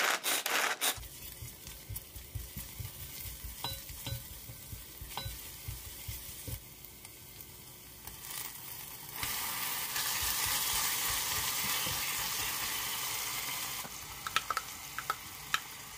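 A spatula taps and scrapes against a pot.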